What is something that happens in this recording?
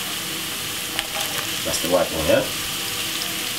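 Chopped onions drop into a sizzling pan with a soft patter.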